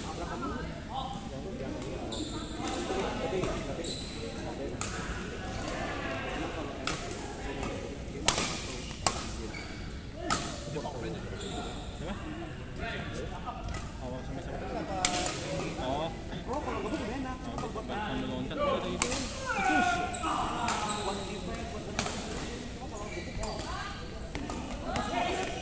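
Badminton rackets strike a shuttlecock with sharp pops in a large echoing hall.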